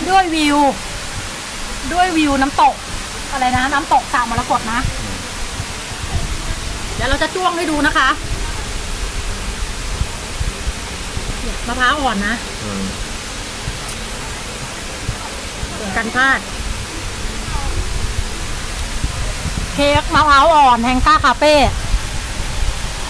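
A woman talks and laughs cheerfully close by.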